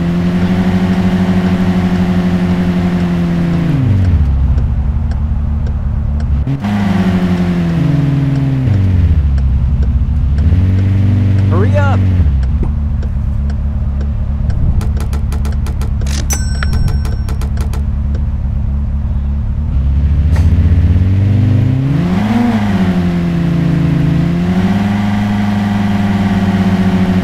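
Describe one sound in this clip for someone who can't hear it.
A sports car engine revs up and down, changing gears.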